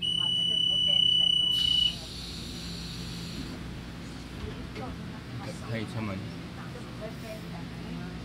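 Passengers murmur quietly nearby.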